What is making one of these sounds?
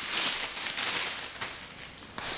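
Plastic wrap crinkles and rustles.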